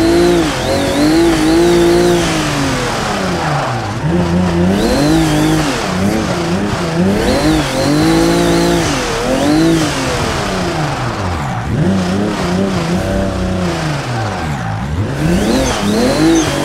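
A car engine revs up and down as gears shift.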